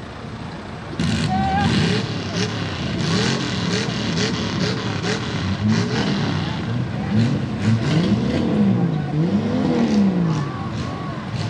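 An engine revs hard and rises and falls in pitch as a vehicle struggles through deep mud.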